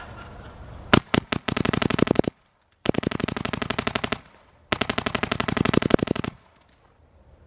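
A paintball marker fires rapid bursts of shots close by.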